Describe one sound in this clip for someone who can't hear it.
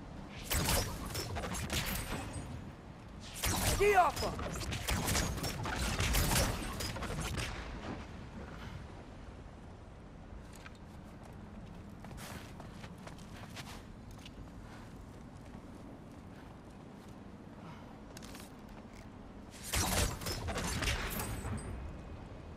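A bow looses an arrow with a sharp twang.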